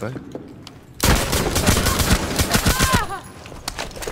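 Gunshots fire in a video game.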